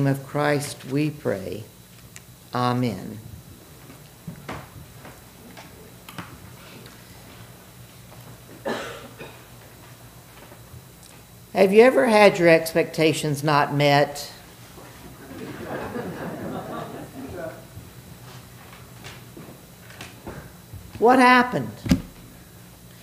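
An elderly man speaks slowly and calmly through a microphone in an echoing hall, with long pauses.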